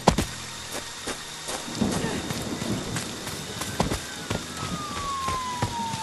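Footsteps crunch along a gravel path outdoors.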